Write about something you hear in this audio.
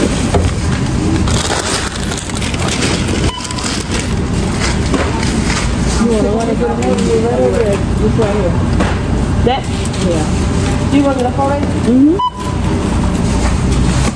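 Plastic bags rustle as groceries are handled.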